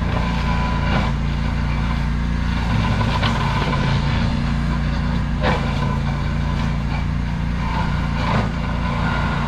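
Brush and branches crack and snap under a mulcher.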